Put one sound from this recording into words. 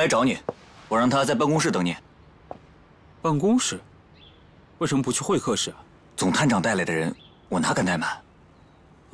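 A young man speaks firmly up close.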